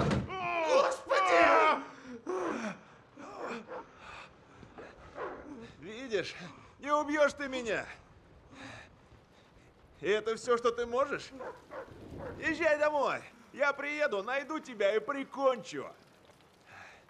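A man laughs wildly up close.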